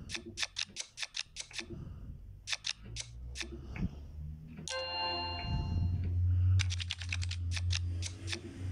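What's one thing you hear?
Playing cards snap down with quick, sharp clicks.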